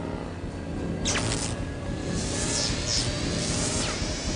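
Electric sparks crackle and snap loudly.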